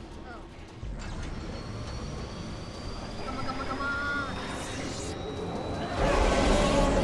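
A machine hums and whines, rising in pitch as it powers up.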